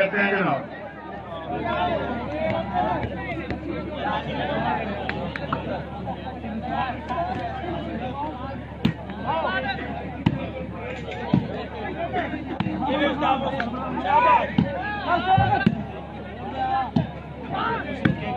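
A large crowd of men chatters and shouts outdoors.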